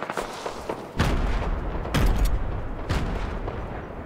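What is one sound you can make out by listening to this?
Gunshots bang loudly.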